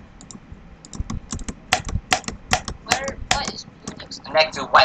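Short soft clicks sound as blocks are placed in a game.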